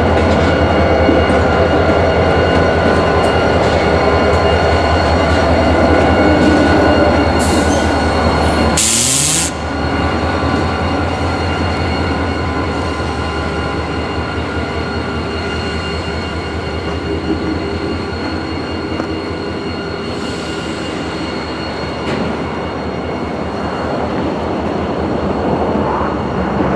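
Train wheels clatter and rattle over the rails.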